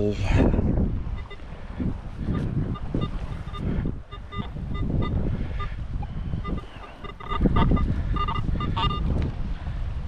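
A metal detector beeps in short, repeated tones.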